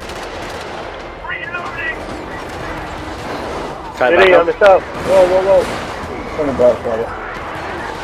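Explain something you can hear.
Rapid gunfire rattles steadily.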